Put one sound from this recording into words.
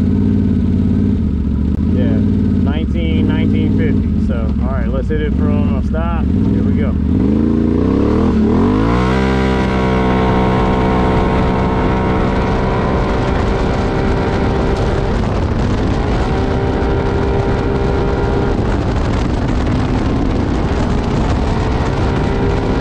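An all-terrain vehicle's engine rumbles loudly and revs higher as it speeds up.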